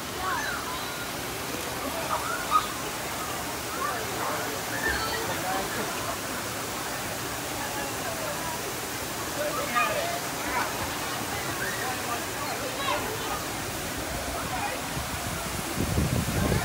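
Children shout and squeal playfully in a pool.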